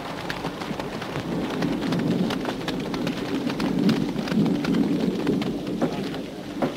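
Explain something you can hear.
Horses' hooves thud and splash through mud.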